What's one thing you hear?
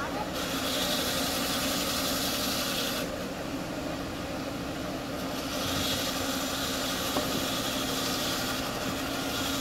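A small machine whirs and hums steadily.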